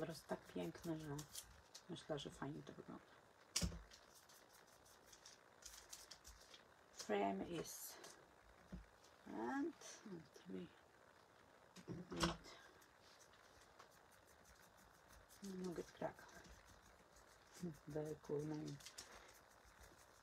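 A brush dabs softly on paper.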